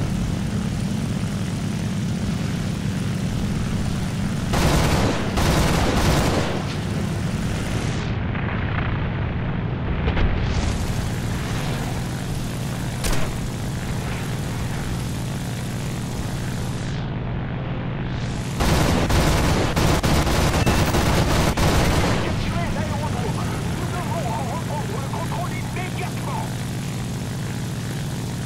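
A propeller plane's engine drones steadily throughout.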